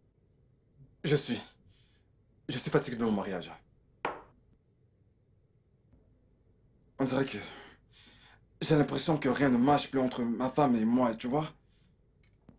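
A man speaks tensely nearby.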